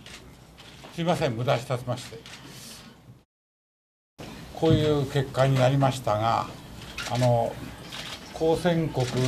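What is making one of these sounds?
An elderly man speaks calmly into microphones.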